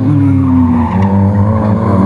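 Tyres screech on asphalt as a car slides through a bend.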